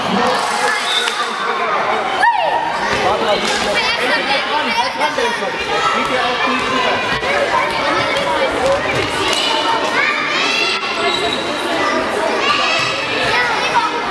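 Young girls shout and call out excitedly in a large echoing hall.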